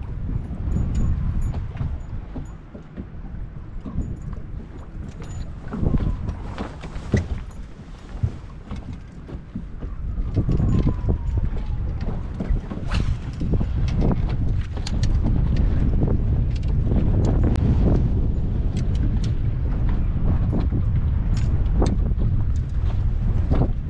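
Wind rumbles steadily outdoors across open water.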